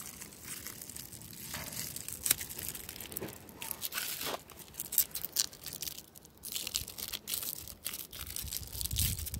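Foil crinkles and rustles in someone's hands.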